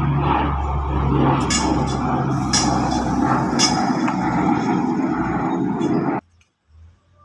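A propeller plane roars loudly overhead.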